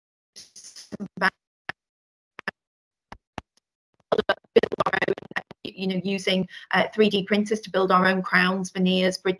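A young woman speaks with animation through an online call.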